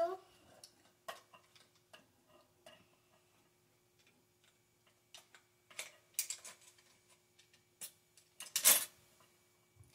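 Plastic parts click and clatter as a boy works a toy fishing rig.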